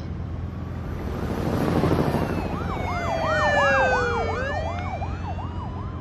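A small propeller plane flies overhead and fades.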